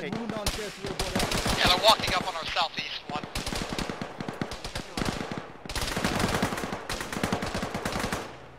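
Footsteps crunch quickly on dry gravel.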